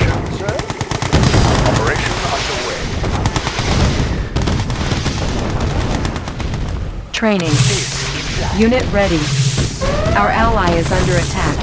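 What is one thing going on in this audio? Gunfire rattles and explosions boom in a battle.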